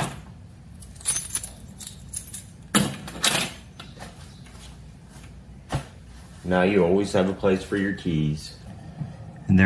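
Keys jingle and clink on metal hooks.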